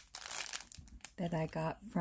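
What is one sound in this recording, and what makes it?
A plastic bag crinkles and rustles in a hand.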